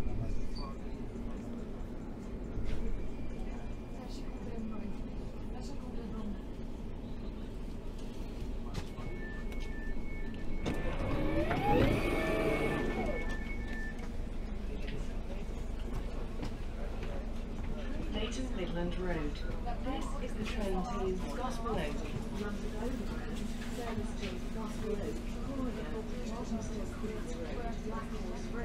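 A train carriage rumbles and hums steadily.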